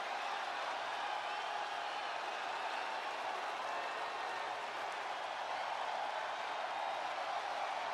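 A large crowd cheers loudly in a big arena.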